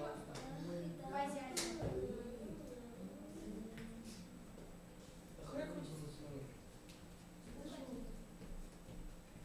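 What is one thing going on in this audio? Young boys talk casually with one another in a room.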